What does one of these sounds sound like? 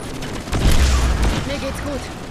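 An assault rifle fires.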